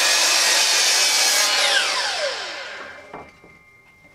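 A power mitre saw screams as it cuts through wood, then winds down.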